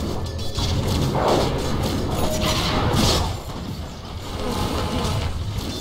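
Magic blasts whoosh and crackle in a fast battle.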